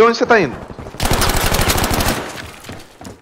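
A gun fires a rapid burst of shots.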